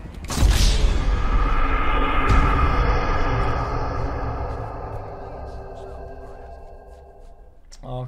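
A deep game sound effect swells loudly and slowly fades.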